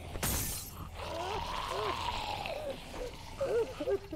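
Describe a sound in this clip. A zombie growls and snarls close by.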